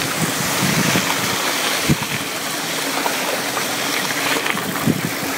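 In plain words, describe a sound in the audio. Wind rushes steadily past up close.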